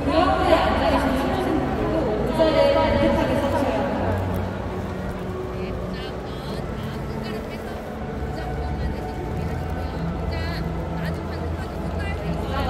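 A large crowd murmurs throughout.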